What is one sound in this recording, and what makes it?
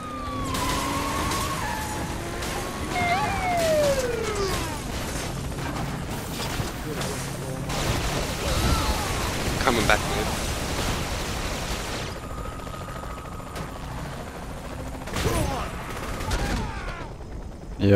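A police siren wails and glides up and down.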